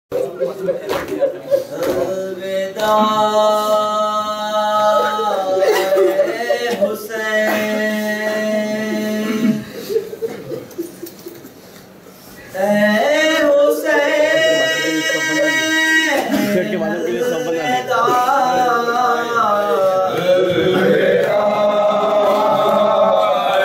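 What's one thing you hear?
Men beat their chests with their hands in rhythm.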